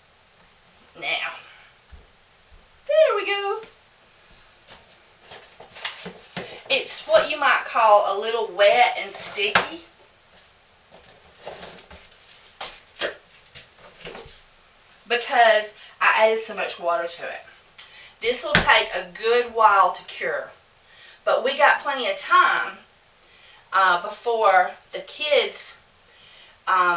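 A middle-aged woman talks calmly, close by.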